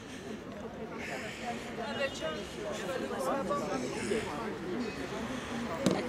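A crowd of people chatters in the distance outdoors.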